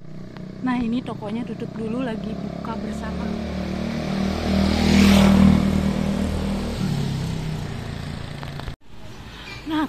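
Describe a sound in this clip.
A motorbike engine hums steadily in the street.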